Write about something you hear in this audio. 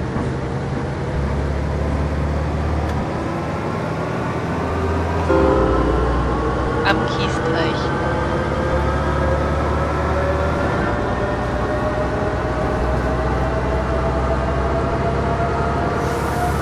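A bus engine hums steadily and slowly rises in pitch as the bus speeds up.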